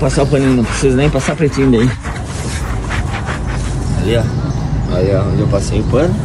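A cloth rubs against a tyre.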